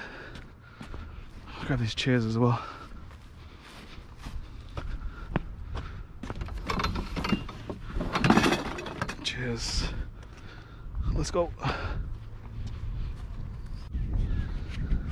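Footsteps scuff on concrete.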